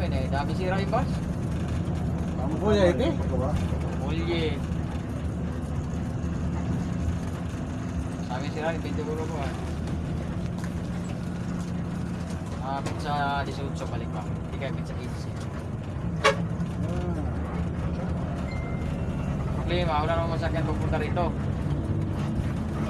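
A bus engine rumbles steadily while driving.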